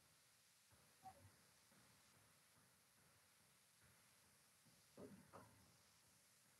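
A man murmurs briefly and quietly, heard through a microphone.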